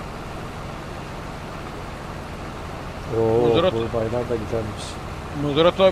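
A combine harvester engine hums steadily.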